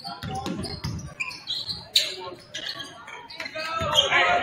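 A basketball bounces on a hardwood floor in an echoing gym.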